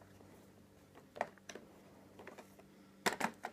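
Plastic coin capsules clack and rattle as a hand handles a tray.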